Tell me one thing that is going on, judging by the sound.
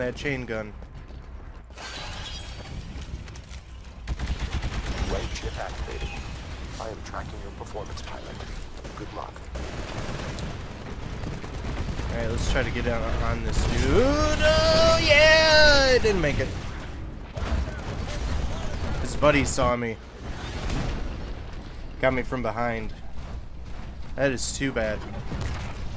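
A man talks casually into a microphone.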